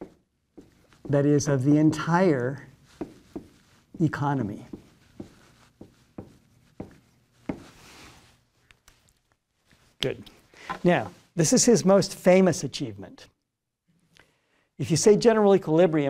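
A middle-aged man lectures calmly through a clip-on microphone.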